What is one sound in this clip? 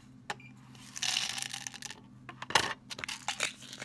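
Pills slide and rattle into a plastic bottle.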